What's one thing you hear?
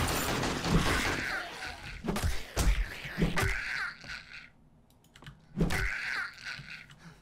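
A zombie growls and groans.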